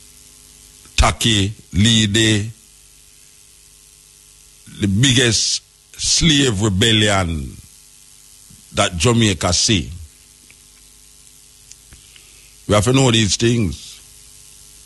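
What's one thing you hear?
A man speaks with animation in short bursts, close to a microphone.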